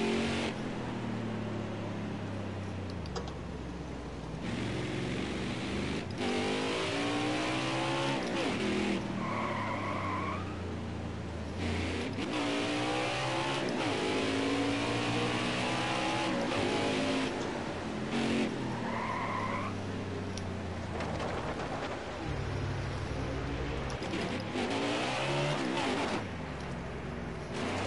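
A V8 stock car engine revs hard and shifts up through the gears.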